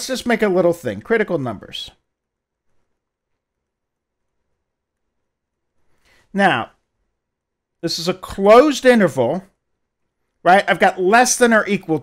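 An older man lectures calmly close to a microphone, with pauses between phrases.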